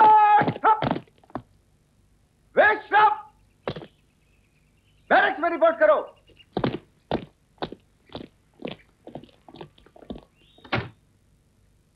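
Young boys shout a marching count in unison.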